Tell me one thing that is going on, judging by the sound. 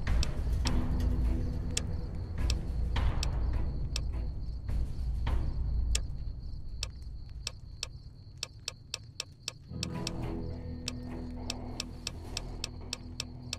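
Short menu clicks tick in quick succession.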